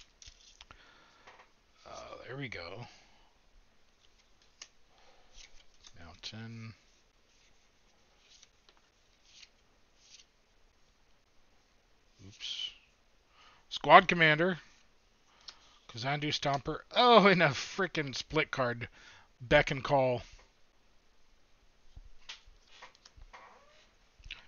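Playing cards shuffle and slide between fingers.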